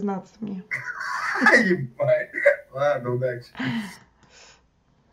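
A middle-aged woman laughs close by.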